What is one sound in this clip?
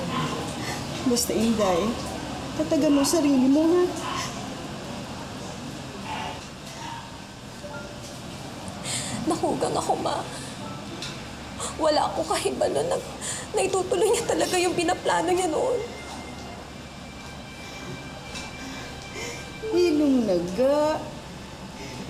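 A middle-aged woman speaks tearfully, crying, close by.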